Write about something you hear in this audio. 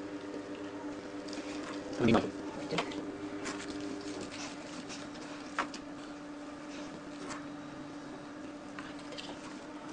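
A dog licks a puppy with soft wet smacks.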